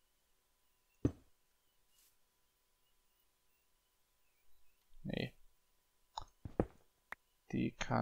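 A pickaxe chips at stone with sharp knocks.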